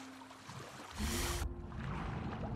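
A swimmer plunges under the water with a splash.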